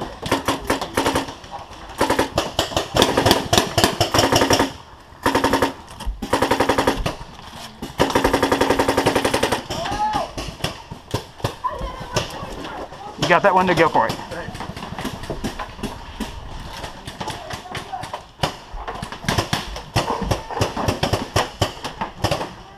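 A paintball marker fires in rapid pops.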